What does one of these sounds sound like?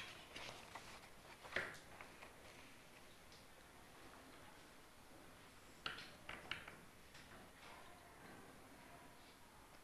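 Students rustle papers and tap pens on desks.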